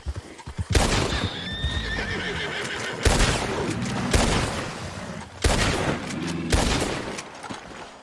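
Gunshots ring out loudly, one after another.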